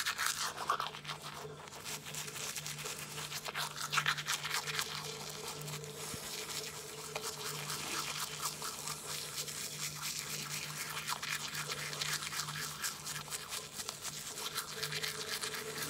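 A toothbrush scrubs rapidly against teeth, close up.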